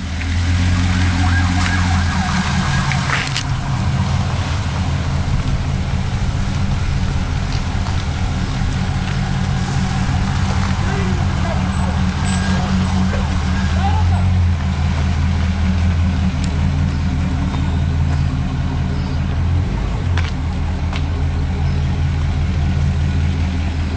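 A car's engine idles with a deep, steady rumble close by.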